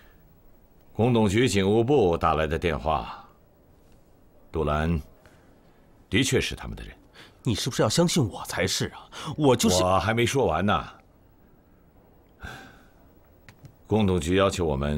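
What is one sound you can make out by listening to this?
A middle-aged man speaks in a low, serious voice nearby.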